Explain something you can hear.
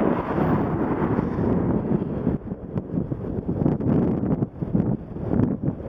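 Car engines idle and rumble nearby in slow traffic.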